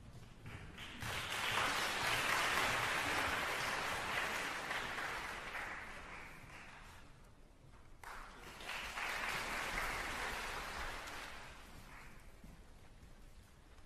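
An audience applauds loudly in a large hall, swelling and fading in two waves.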